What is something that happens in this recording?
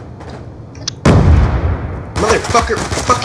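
A video game rifle fires a loud burst.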